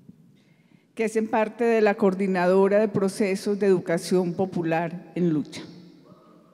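A woman speaks with animation into a microphone in a large echoing hall.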